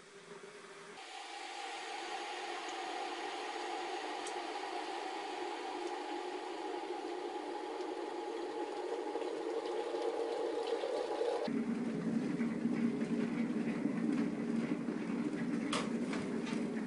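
An electric kettle heats water with a rising, rumbling roar.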